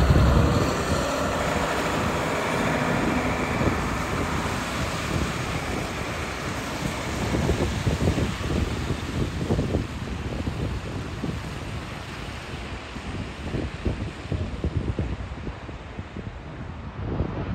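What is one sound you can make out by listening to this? A coach engine rumbles as the bus drives away and fades.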